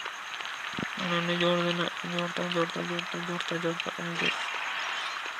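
Small coins jingle and chime as they are picked up.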